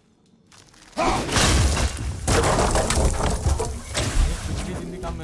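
Wooden beams crash and splinter as they break apart.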